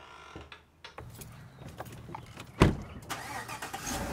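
A car door shuts with a thud.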